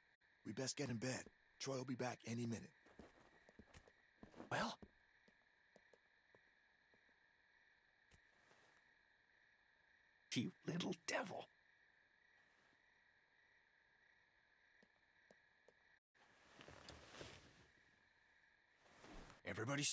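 A man talks into a microphone in short bursts.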